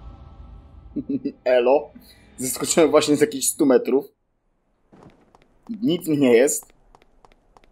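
A young man speaks in a low, calm voice.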